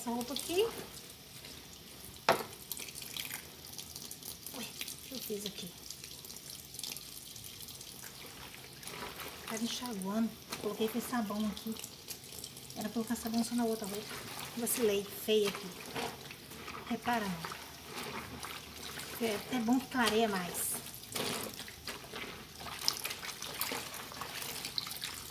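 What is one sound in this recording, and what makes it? Wet clothes swish and squelch as hands scrub them in water.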